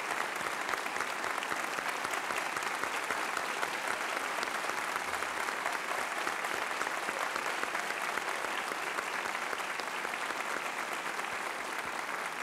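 A large audience applauds loudly and steadily in an echoing hall.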